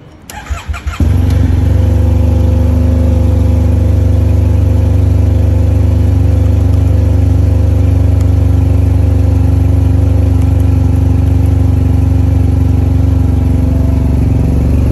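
A motorcycle engine catches and idles with a steady, deep rumble.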